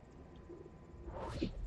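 A ghostly whoosh swells up sharply.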